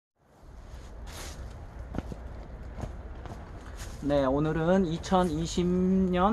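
Footsteps crunch on dry plant litter.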